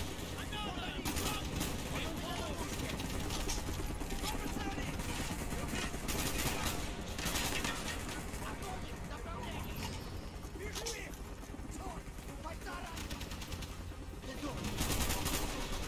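A rifle fires in loud bursts of shots.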